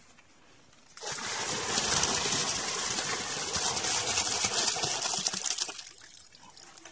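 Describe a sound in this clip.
Water from a bucket splashes loudly into a pond.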